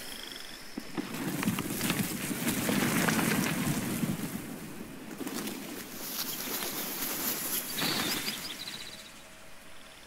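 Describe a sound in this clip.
Water pours down steadily in a rushing stream.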